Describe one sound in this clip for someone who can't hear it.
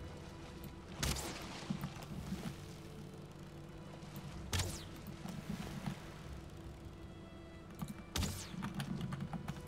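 A weapon whooshes through the air in short swings.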